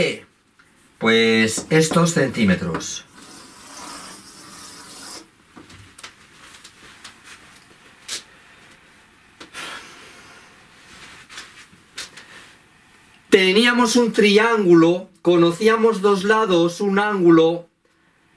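A middle-aged man speaks calmly and clearly nearby.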